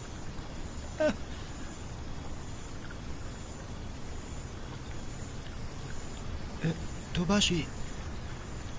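A young man speaks softly in short bursts, close by.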